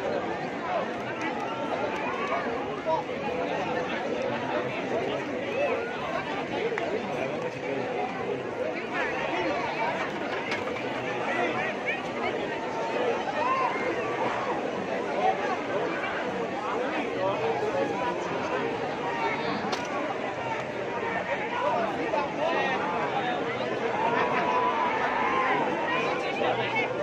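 A large crowd outdoors cheers, shouts and chants loudly.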